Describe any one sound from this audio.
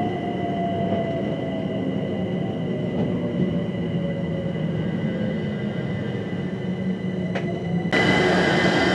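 A train rumbles and clatters along the tracks.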